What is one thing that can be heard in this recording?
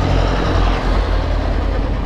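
A passenger truck's engine rumbles as it passes nearby.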